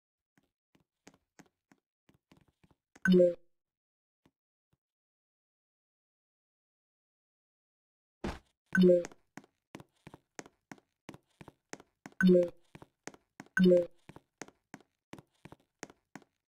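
Quick, light game footsteps tap along at a steady pace.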